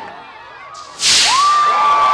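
Many small rockets launch together with a loud rushing roar.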